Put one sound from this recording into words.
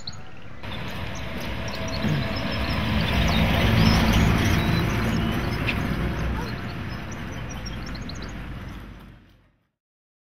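A pickup truck drives past on a street.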